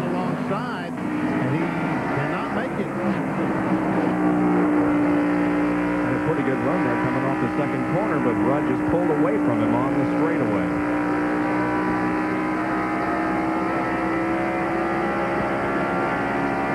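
A race car engine drones loudly and steadily up close.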